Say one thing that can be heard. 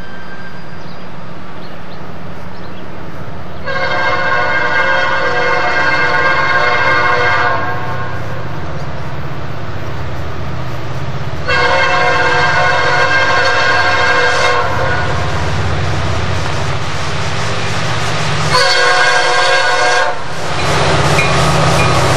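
A diesel locomotive engine rumbles as it approaches on the track.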